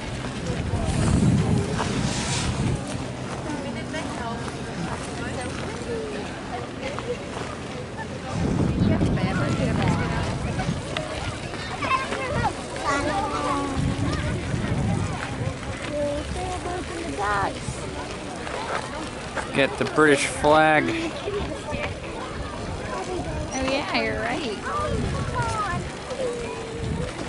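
Many people chatter in the distance outdoors.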